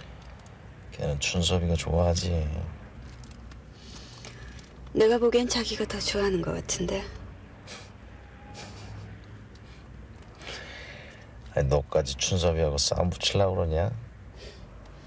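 A man speaks quietly and calmly up close.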